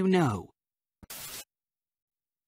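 Static hisses briefly.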